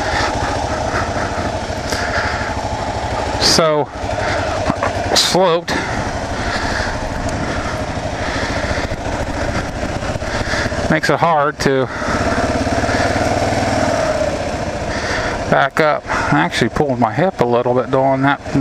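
A motorcycle engine rumbles steadily close by, revving now and then.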